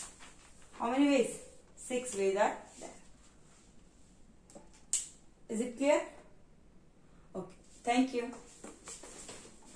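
A young woman speaks clearly and calmly close by.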